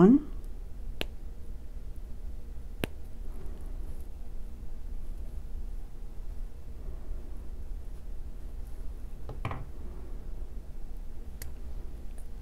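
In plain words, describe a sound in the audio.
Small pliers click sharply a few times.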